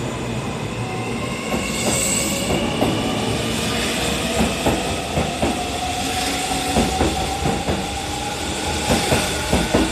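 Train brakes squeal with a high, wavering whine.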